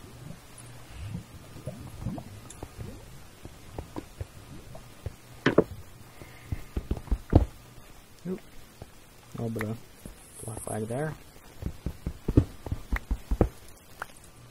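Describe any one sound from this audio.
A pickaxe chips at stone in short knocks.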